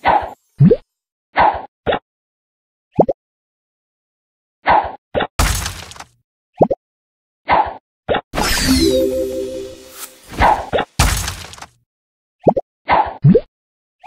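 Short whooshes sound as a bubble is shot.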